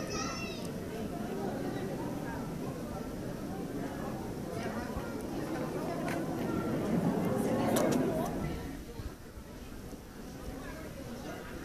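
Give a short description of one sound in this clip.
A crowd of men and women chatters nearby in a large echoing hall.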